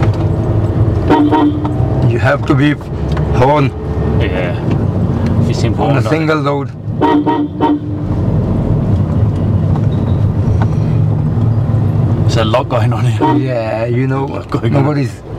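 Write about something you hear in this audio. A man talks with animation in a car, close to a microphone.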